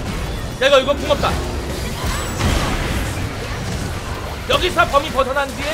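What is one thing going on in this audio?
Magical blasts whoosh and crackle in a fast fight.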